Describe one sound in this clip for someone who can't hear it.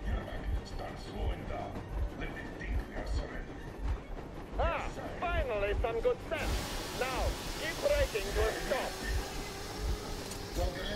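Train wheels clatter in a steady rhythm on the rails.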